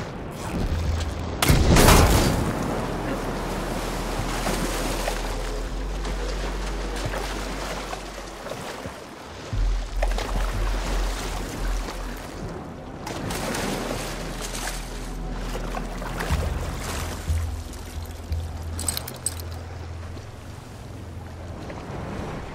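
A bowstring snaps as an arrow is shot.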